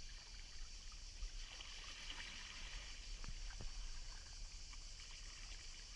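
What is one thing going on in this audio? A paddle splashes softly in shallow water.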